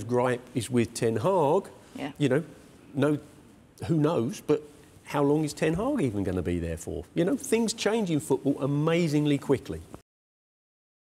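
A middle-aged man speaks with animation into a studio microphone.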